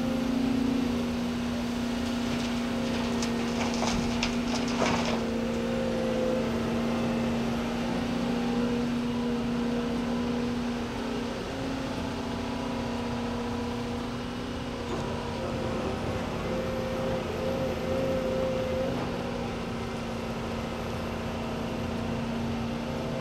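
A diesel tracked excavator's engine runs under load.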